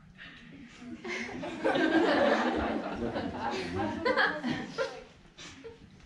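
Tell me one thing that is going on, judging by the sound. A crowd of young people laughs and cheers loudly.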